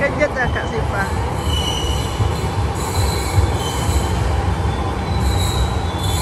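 A train rolls past along the tracks.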